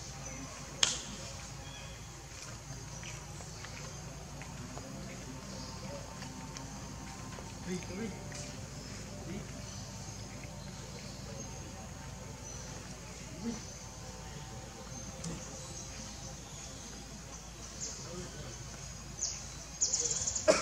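Monkeys rustle and shuffle softly on stone.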